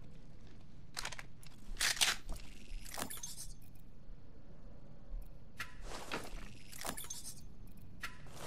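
Short electronic clicks sound as items are picked and sorted.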